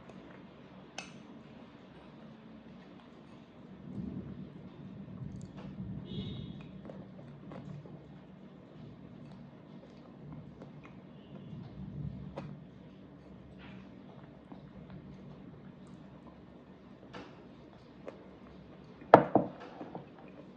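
A metal spoon clinks against a plate.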